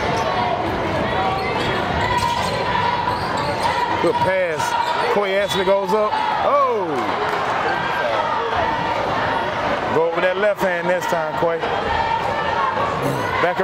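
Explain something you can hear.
A large indoor crowd murmurs and cheers in an echoing gym.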